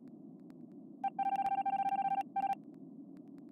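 A loud electronic tone from a game sounds steadily, then cuts off.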